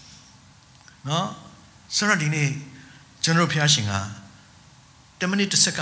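A man preaches with emphasis into a microphone, his voice heard through loudspeakers in a large hall.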